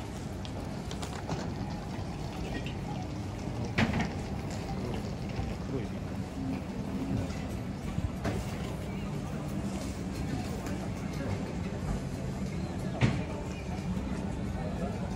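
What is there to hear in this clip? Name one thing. A crowd of people murmurs in a busy street outdoors.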